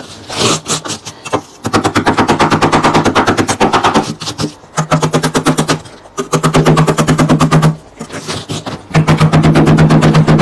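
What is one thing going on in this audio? A plastic scraper scrapes frost off ice in quick, rough strokes.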